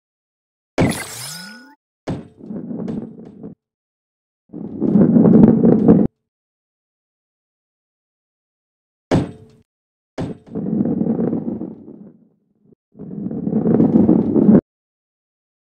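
A ball rolls with a rumble over a wooden track.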